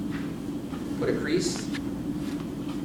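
A sheet of paper rustles as it is laid down.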